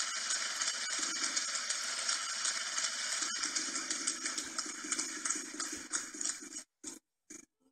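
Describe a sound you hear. A game wheel spins with rapid ticking.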